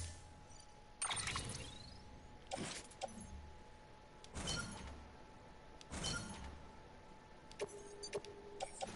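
Electronic menu whooshes and chimes sound in short bursts.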